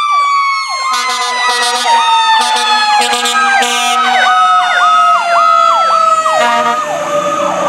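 A fire truck's air horn blasts in quick repeated bursts.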